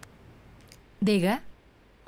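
A young woman answers a phone.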